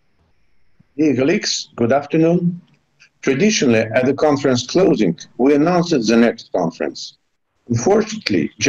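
An elderly man speaks steadily over an online call.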